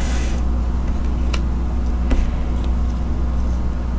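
A playing card is laid down on a table with a light tap.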